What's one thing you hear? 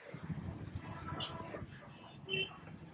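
Chickens cluck and chirp in a cage close by.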